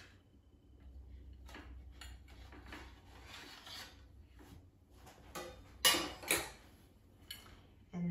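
A spatula scrapes and taps against a plate.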